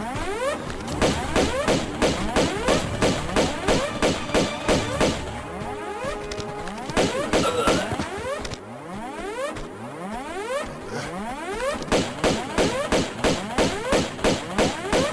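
Pistols fire in quick repeated shots.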